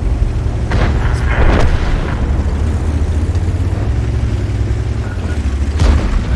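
A tank engine rumbles low and steady as the tank rolls along.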